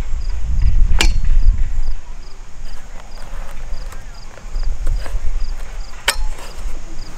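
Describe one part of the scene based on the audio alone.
Plastic and metal parts click and clack as a folding frame is handled.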